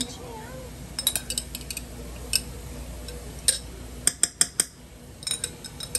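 A spice jar rattles as it is shaken over a pan.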